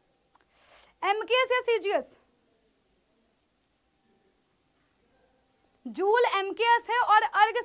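A young woman speaks with animation, close to a microphone.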